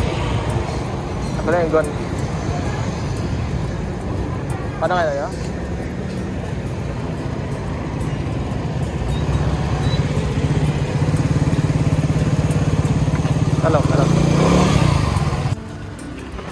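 A motorcycle engine idles and hums steadily close by.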